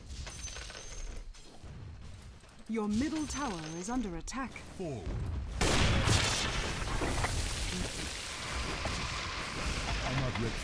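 Spells and attacks clash and whoosh in a fight.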